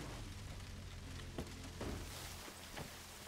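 A car engine hums at idle.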